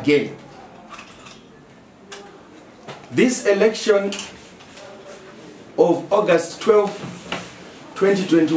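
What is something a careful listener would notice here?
A man speaks firmly and emphatically into a nearby microphone, with pauses between phrases.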